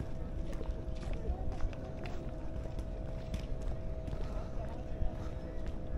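Footsteps tap steadily on paving.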